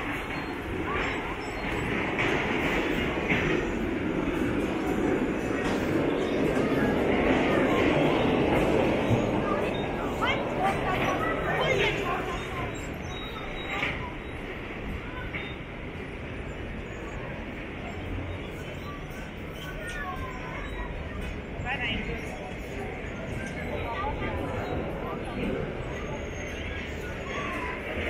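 Traffic hums steadily nearby outdoors.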